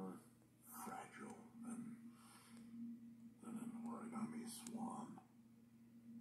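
A middle-aged man speaks quietly and slowly, close by.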